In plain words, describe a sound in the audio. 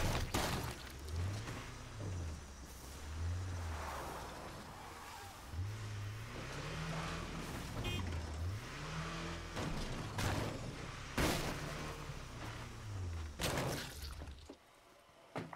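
A truck engine revs up and down as it drives over rough ground.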